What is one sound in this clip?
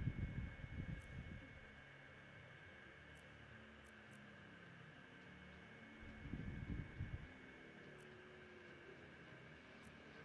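Soft electronic clicks tick now and then.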